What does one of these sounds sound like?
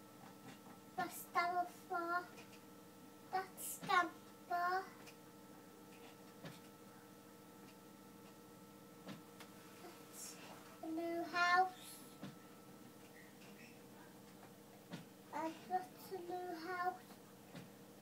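A small child talks into a phone in a high voice, in short bursts.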